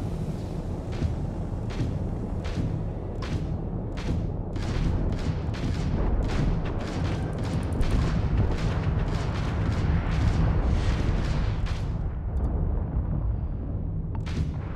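Laser cannons fire in rapid bursts of sharp zaps.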